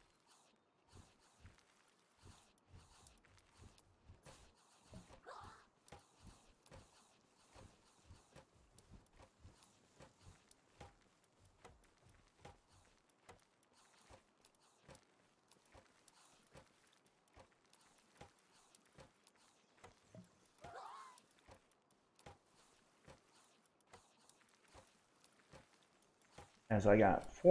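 Soft interface clicks tick steadily as items are picked through.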